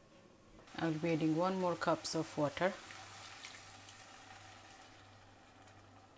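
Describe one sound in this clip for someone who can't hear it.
Water pours into a pot of food.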